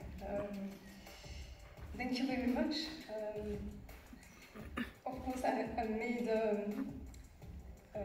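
A woman speaks calmly into a microphone over a loudspeaker in a large echoing hall.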